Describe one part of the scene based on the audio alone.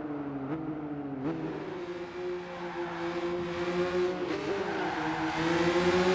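A racing car engine drones steadily, shifting gears with jumps in pitch.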